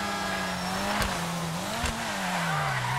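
A sports car exhaust pops and backfires while slowing down.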